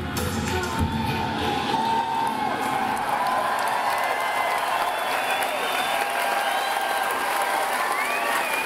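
An electric guitar rings out with wavering feedback through loud speakers.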